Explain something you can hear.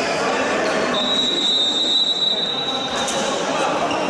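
A referee's whistle blows one long blast.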